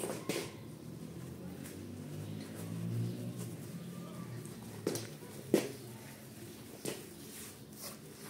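A damp rug is rolled up with soft rustling.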